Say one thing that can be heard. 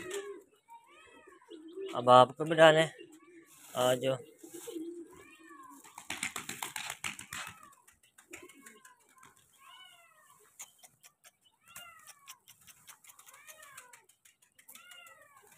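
Pigeons call with short, rising and falling chirps.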